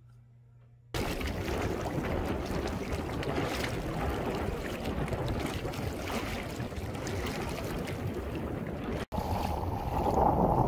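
A dog splashes as it wades through shallow water.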